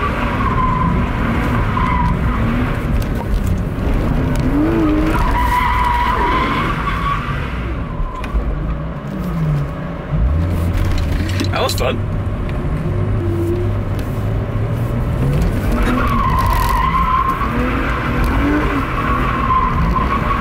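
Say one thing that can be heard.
A car engine roars and whines loudly.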